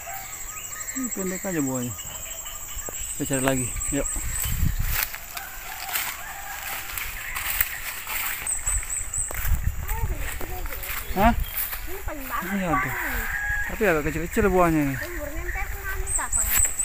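A woman talks outdoors.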